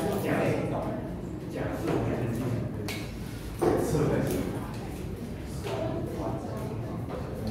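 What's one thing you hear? A man lectures calmly through a microphone in an echoing room.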